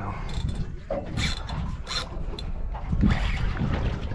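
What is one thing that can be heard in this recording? A fishing reel clicks as a man winds it in.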